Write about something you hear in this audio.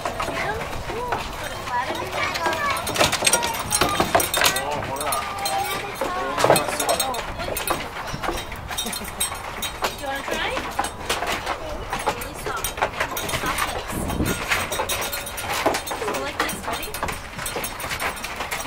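Goats bleat close by.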